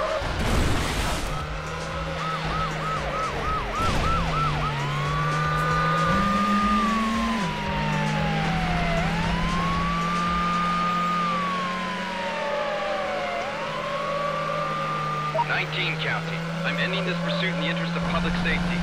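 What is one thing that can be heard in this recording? A car engine drones steadily at high revs.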